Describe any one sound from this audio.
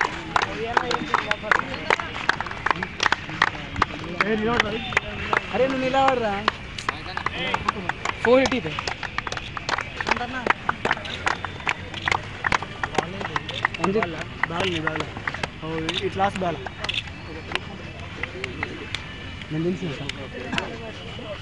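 A crowd claps hands outdoors.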